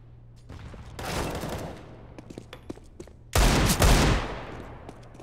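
A pistol fires loud shots.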